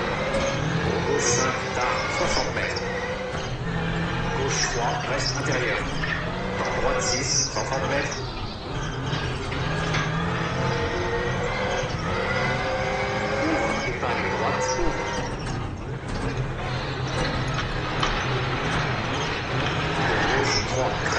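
A rally car engine roars and revs up and down as gears change.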